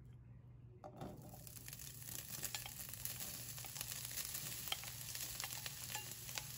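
Food sizzles and crackles in hot oil in a pan.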